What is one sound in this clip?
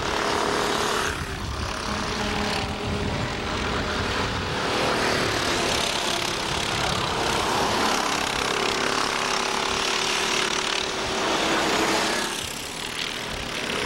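A go-kart engine buzzes loudly as the kart speeds past and fades.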